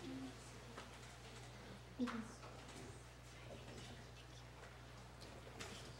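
A woman speaks faintly at a distance in a large room.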